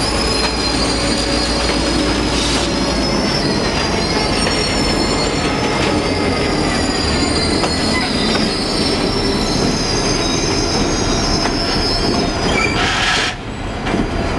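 A diesel locomotive engine idles with a low throb nearby.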